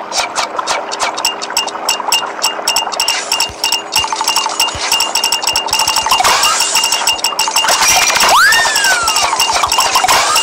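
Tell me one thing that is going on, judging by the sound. Quick electronic clicks and chimes from a game tick rapidly.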